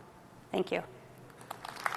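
A woman speaks briefly into a microphone.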